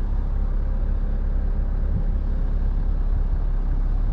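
A car's boot lid opens with a soft motor hum.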